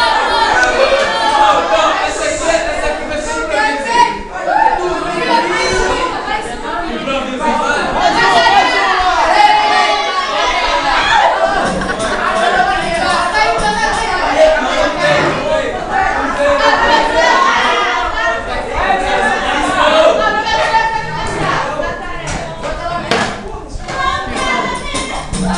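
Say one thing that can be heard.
Young men sing together loudly and with energy.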